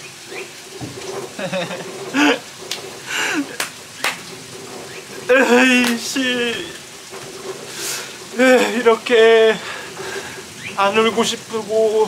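A young man sobs and cries close by.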